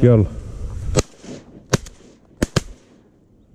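A semi-automatic shotgun fires three quick shots outdoors.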